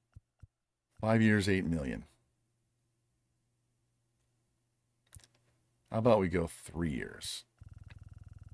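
A man speaks casually into a microphone, close by.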